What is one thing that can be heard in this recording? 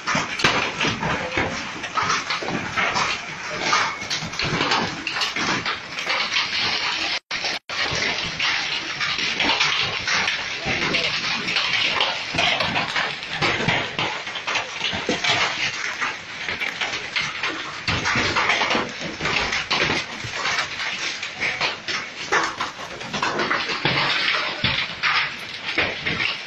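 Hail patters and clatters densely on the ground and on cars outdoors.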